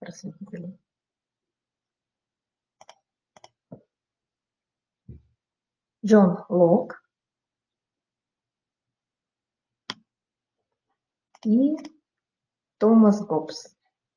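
A woman speaks calmly through a microphone in an online call, pausing between phrases.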